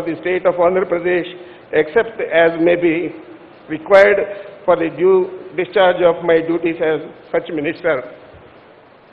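An elderly man reads out over a microphone in an echoing space.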